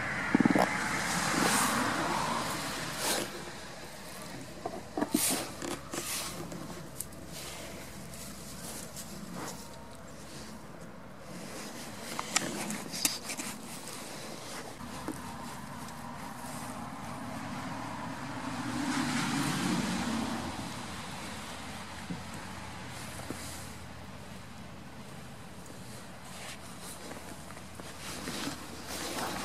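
Fabric rustles close by as a goat nuzzles against a jacket.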